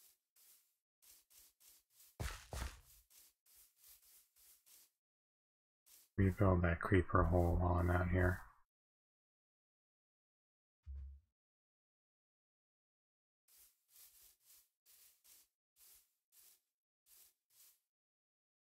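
Soft footsteps tread steadily over grass.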